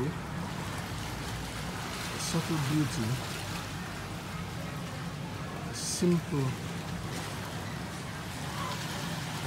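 Small waves lap gently against rocks on a shore.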